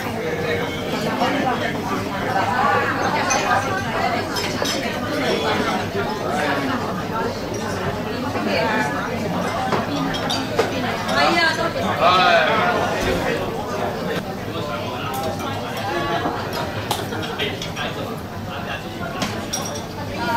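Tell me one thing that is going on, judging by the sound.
A crowd of men and women chatter loudly in a large echoing hall.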